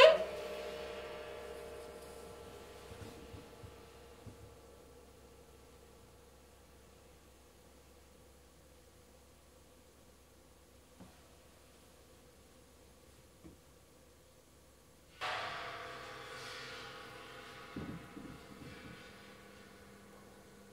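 A gong or cymbal is struck hard and rings out slowly.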